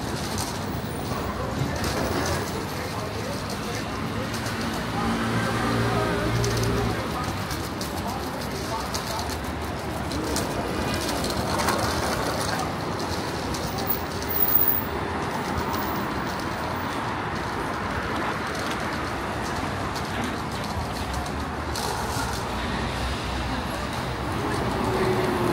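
Traffic rumbles steadily along a busy city street outdoors.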